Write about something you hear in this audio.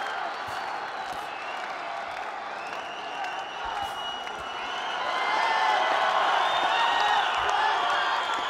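Gloved punches thud against a body.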